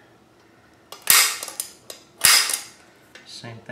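A metal tool clicks and knocks against wood.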